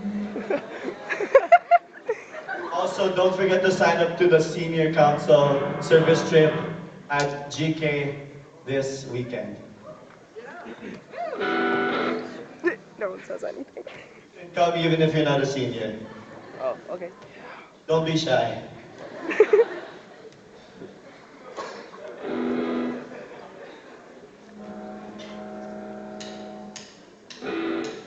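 A band plays loud, noisy rock music in a large hall.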